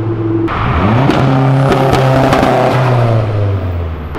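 Exhaust pops and crackles from a passing car.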